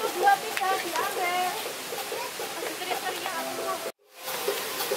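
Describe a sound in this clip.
Young children chatter and laugh playfully nearby.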